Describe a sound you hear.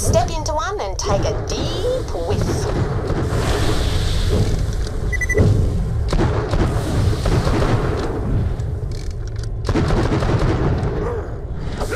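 Guns fire in rapid bursts with sharp bangs.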